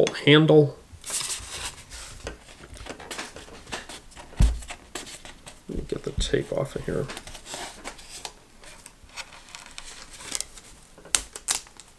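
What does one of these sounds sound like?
Paper and card rustle and tap on a table.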